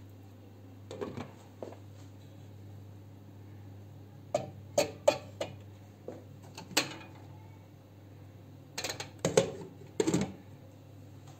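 Glass pot lids clink and rattle against metal pots.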